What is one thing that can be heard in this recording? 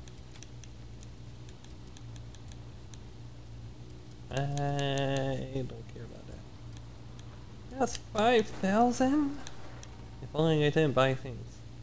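Soft interface clicks tick as a menu selection moves.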